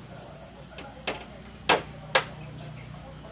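Bamboo poles knock sharply against each other a few times.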